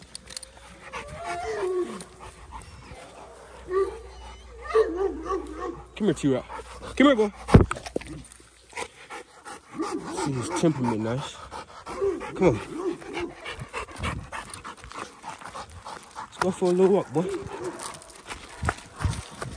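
A dog growls and whines playfully up close.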